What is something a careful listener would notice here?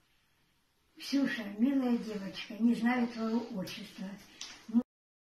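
An elderly woman speaks with animation close by.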